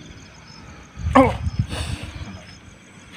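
A young man cries out sharply.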